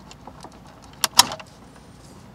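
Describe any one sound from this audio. A plastic connector clicks as it is pulled loose.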